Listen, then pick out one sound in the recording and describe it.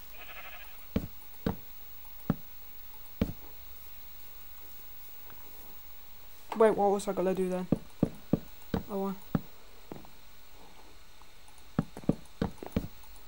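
Wooden blocks knock softly as they are set down one after another.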